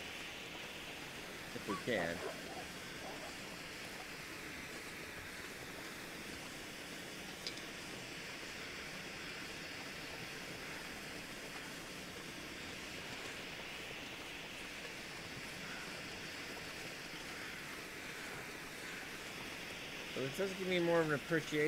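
A flare hisses and sputters steadily.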